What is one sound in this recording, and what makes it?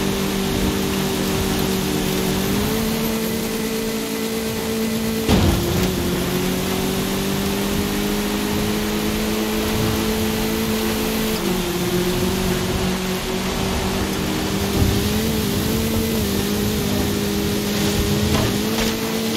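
A buggy engine roars steadily, its pitch jumping with each gear change.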